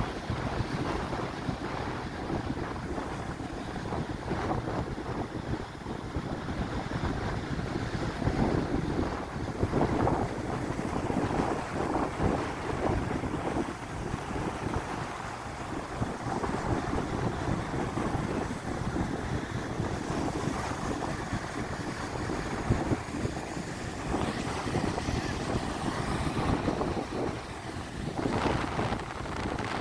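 Strong wind buffets and roars outdoors.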